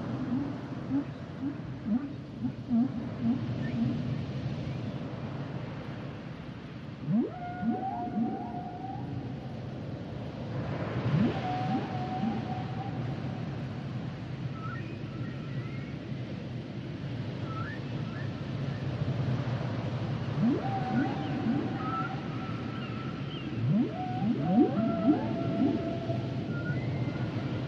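Whales call with long, gliding moans and whistles.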